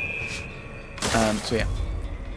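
A body lands with a soft thump and rustle in a heap of hay.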